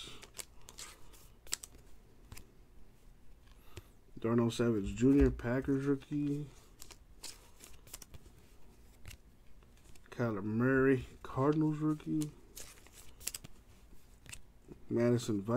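Trading cards rustle and click softly as hands flip through a stack.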